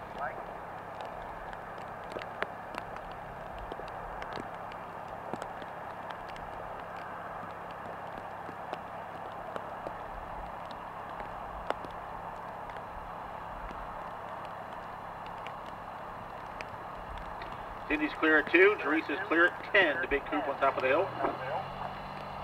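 A horse gallops over grass with soft, dull hoofbeats.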